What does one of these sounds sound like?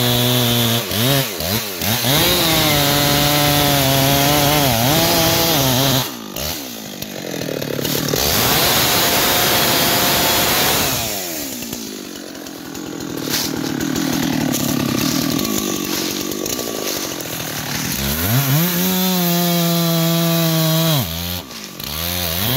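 A chainsaw engine revs loudly and idles.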